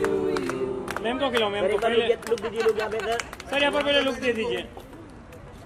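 A group of men and women sing together loudly and cheerfully.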